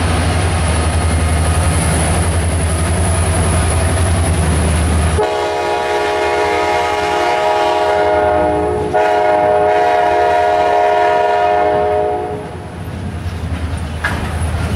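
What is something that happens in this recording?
A long freight train rolls by, its wheels clattering over the rails.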